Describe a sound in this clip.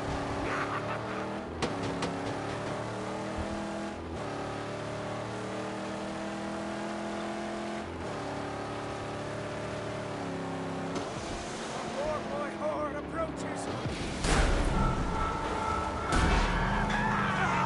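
A car engine roars steadily, shifting up through its gears.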